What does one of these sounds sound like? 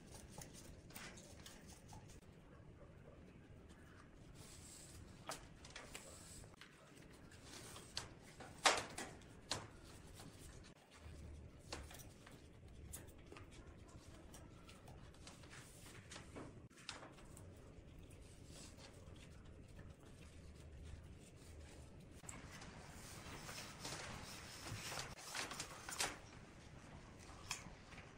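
Gloved hands click and knock against metal.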